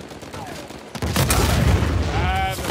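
An explosion roars with a burst of fire.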